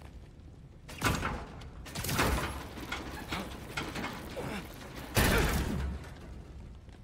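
Wooden doors crash and splinter open.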